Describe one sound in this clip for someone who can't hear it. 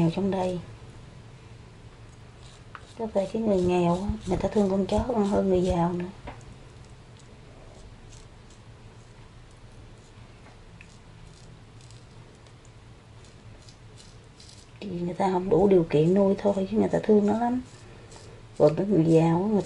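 Small scissors snip softly at an animal's fur.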